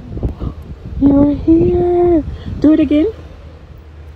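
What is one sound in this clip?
A woman exclaims in surprise.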